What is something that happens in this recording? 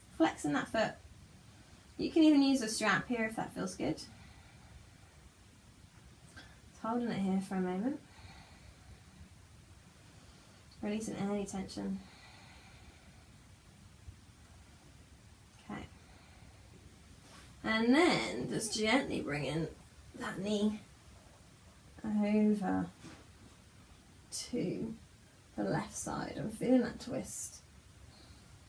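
A woman speaks calmly and close by, in short phrases with pauses between them.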